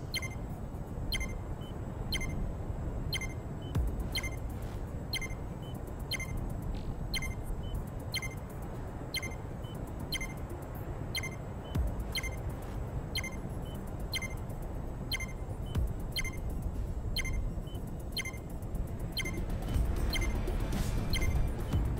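A short electronic beep ticks once every second, counting down.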